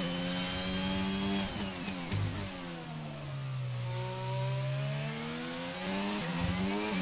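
A race car engine whines loudly, dropping in pitch as it slows for a corner and then rising again as it speeds up.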